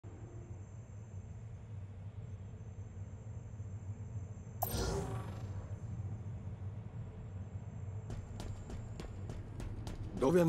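A low electronic hum drones steadily in an echoing metal corridor.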